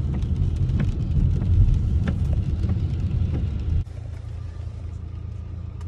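Windshield wipers swish across the glass.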